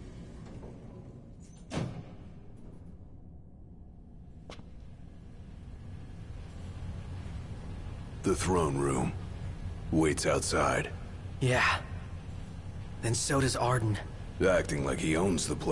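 An elevator hums low and steady as it rides.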